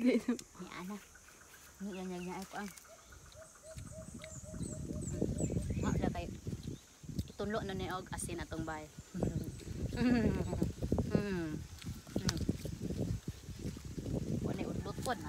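A young woman talks with animation close by, outdoors.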